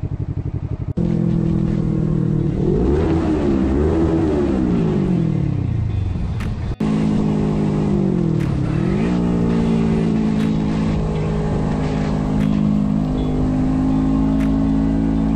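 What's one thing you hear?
A motorcycle engine revs hard, rising and falling in pitch as it shifts gears.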